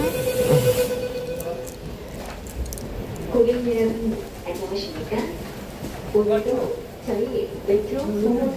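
A subway train rumbles steadily along its track.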